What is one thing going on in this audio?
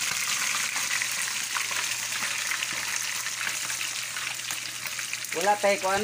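Hot oil sizzles and crackles loudly as chicken fries in a pan.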